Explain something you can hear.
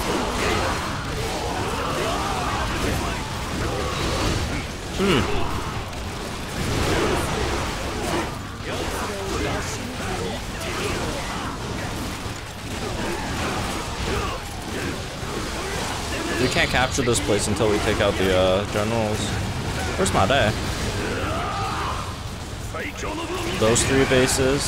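Swords clash and slash in rapid game combat.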